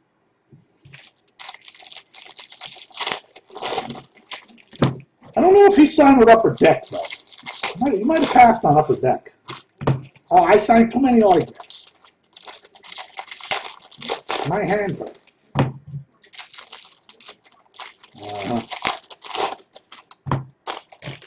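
Cardboard and foil packs rustle and crinkle in a man's hands.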